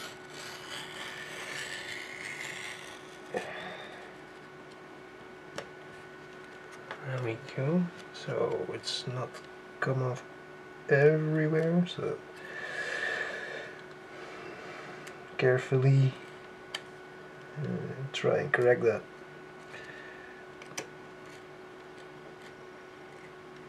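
A craft knife scrapes as it cuts through card along a metal ruler.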